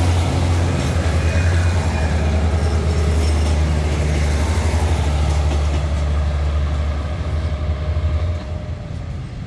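A diesel train engine rumbles deeply and steadily nearby.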